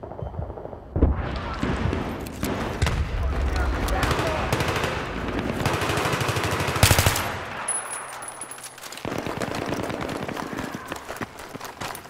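Gunfire rattles in rapid, loud bursts.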